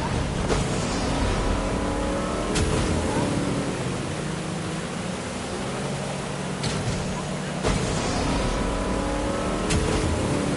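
Water splashes and churns against a boat.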